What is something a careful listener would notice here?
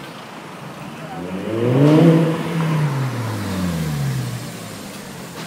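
A sports car engine approaches and roars loudly as it slows.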